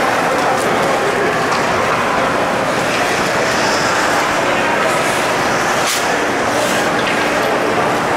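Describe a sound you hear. Hockey sticks tap on the ice.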